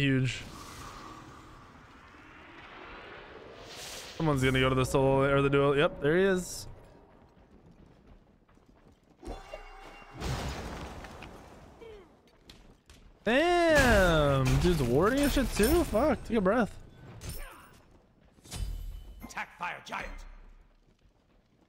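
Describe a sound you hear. Game weapons swing and strike with sharp whooshes and hits.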